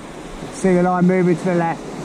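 Small waves wash onto a beach.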